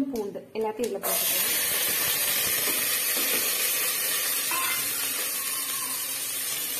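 A pot of liquid hisses and simmers on a gas flame.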